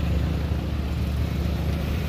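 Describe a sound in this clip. A motorcycle drives past.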